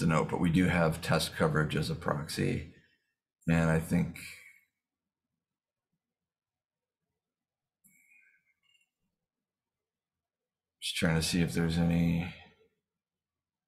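A man speaks calmly through a call microphone, in short bursts.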